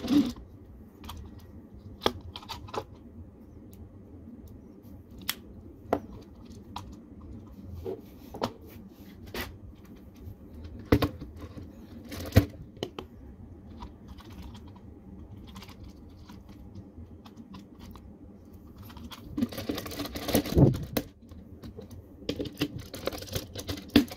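Plastic toy parts click and snap as they are fitted together.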